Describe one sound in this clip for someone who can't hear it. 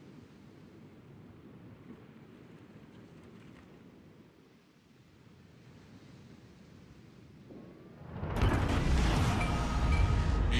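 Sea water washes and splashes against a ship's hull.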